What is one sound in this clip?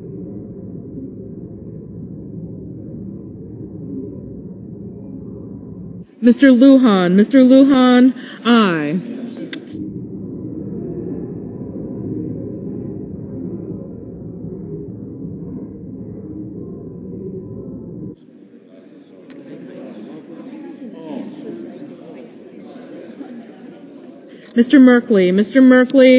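Many people murmur and chat in a large room.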